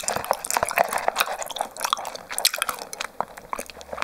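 A young woman sips loudly through a straw close to a microphone.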